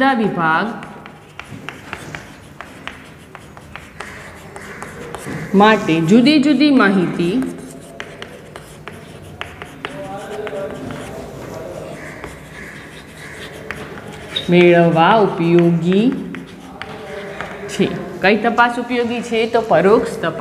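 A woman speaks clearly and steadily, as if teaching.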